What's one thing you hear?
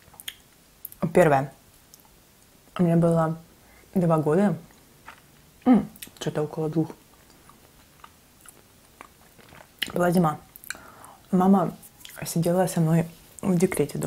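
A young woman talks softly and close by, in short bursts.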